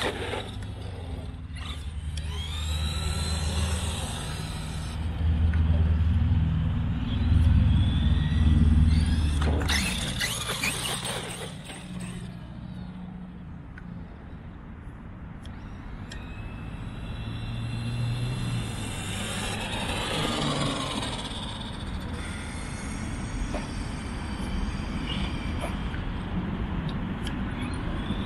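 Tyres of a remote-control car whir on a rubber track.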